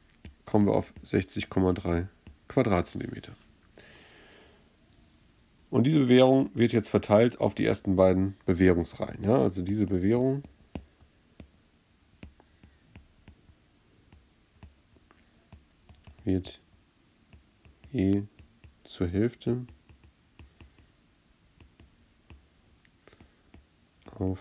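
A stylus taps and scrapes softly on a glass tablet.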